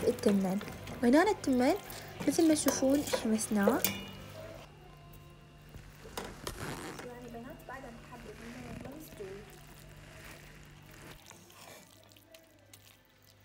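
A wooden spatula stirs and scrapes thick rice in a metal pot.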